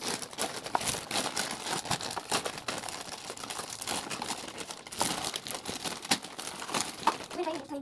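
Cardboard boxes tap on a hard surface.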